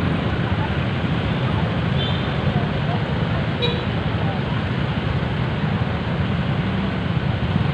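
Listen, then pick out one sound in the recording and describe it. Small motorcycles idle nearby.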